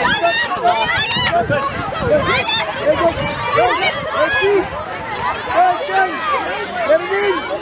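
A foot kicks a football on grass.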